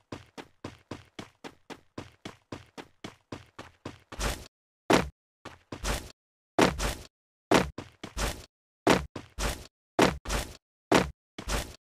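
Footsteps thud quickly and steadily across grass and dirt.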